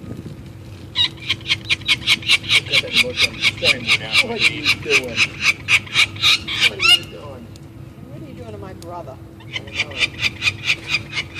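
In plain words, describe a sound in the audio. A young bird screeches in rapid, repeated cries.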